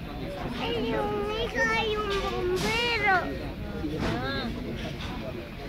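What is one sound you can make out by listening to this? A young child shouts excitedly nearby.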